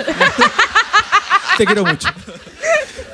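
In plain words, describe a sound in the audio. A young woman laughs loudly and heartily close to a microphone.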